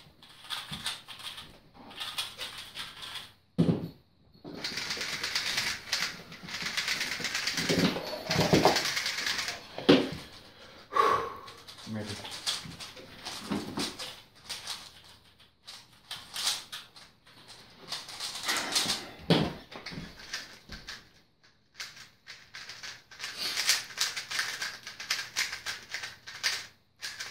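Plastic puzzle cubes click and rattle as they are turned quickly.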